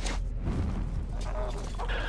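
A fire crackles close by.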